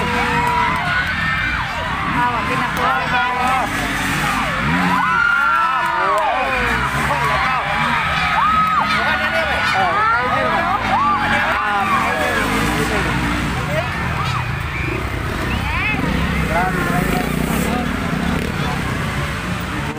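A large crowd chatters and calls out outdoors.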